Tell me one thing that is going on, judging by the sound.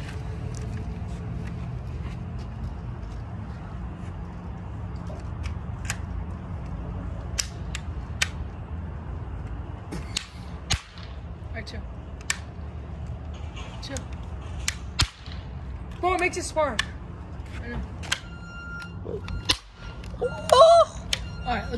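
A toy gun clicks as a boy works its lever.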